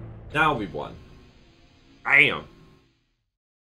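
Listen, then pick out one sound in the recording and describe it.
A young man shouts loudly into a close microphone.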